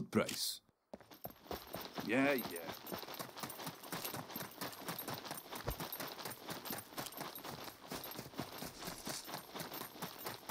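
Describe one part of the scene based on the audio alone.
Footsteps crunch steadily on dirt.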